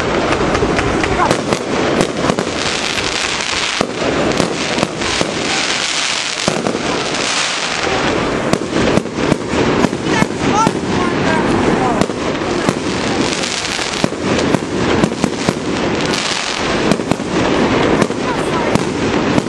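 Fireworks crackle and fizz as sparks scatter.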